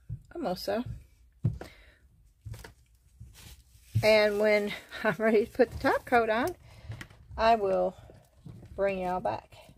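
Small plastic containers knock and clatter lightly on a tabletop.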